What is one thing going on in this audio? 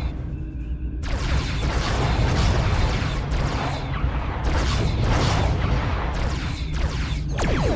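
Laser beams fire in rapid zapping bursts.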